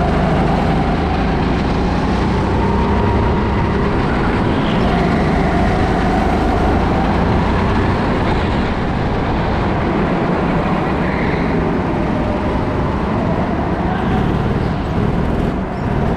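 A go-kart engine whines loudly and steadily up close, rising and falling with the throttle.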